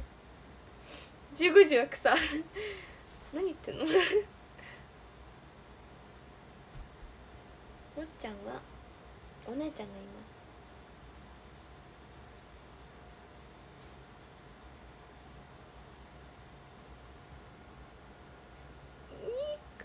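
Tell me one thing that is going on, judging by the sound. A young woman talks cheerfully and softly, close to a phone microphone.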